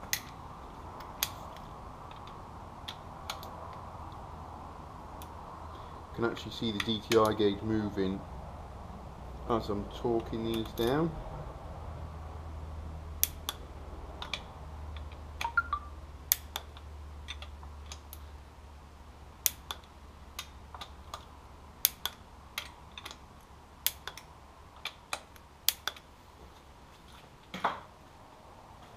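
Metal tools clink and tap against metal.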